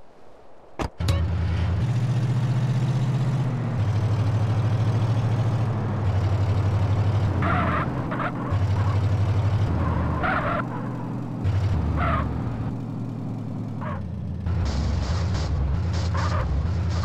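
A heavy truck engine rumbles and revs as it drives.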